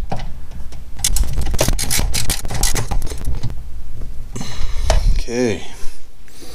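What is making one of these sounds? Plastic parts and hoses rattle and click under working hands.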